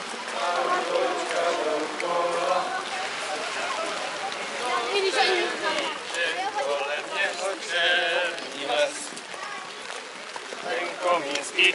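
A group of men and women sings and chatters outdoors.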